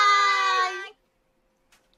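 Several young women call out a cheerful goodbye together, close by.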